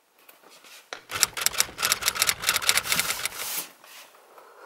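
A metal chain strap clinks as a handbag is lifted from a shelf.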